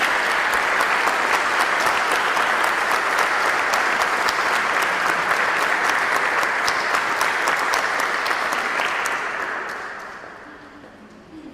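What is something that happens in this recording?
An audience claps loudly in a large echoing hall, then the clapping fades.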